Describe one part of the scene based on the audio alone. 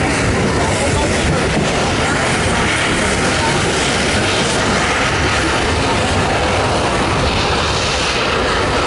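A narrow-gauge steam train rumbles along the track.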